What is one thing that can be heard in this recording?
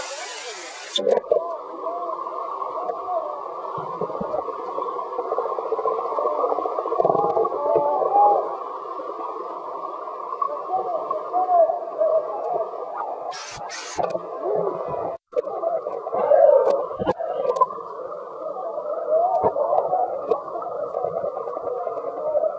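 Water gurgles and rumbles, muffled as if heard underwater.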